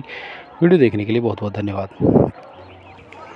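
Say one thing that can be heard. An elderly man speaks slowly and forcefully through a microphone and loudspeakers.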